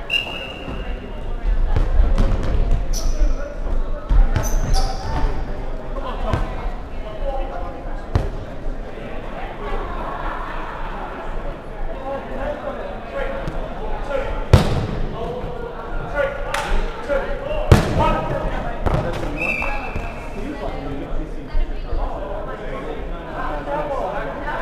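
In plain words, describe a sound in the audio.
Players shout and call out to each other in a large echoing hall.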